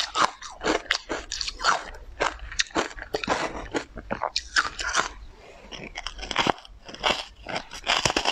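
A young woman chews and crunches food close to a microphone.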